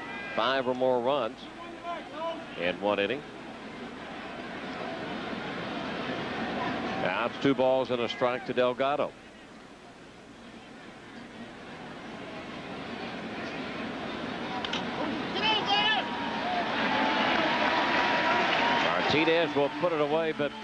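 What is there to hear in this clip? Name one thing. A stadium crowd murmurs and then cheers loudly.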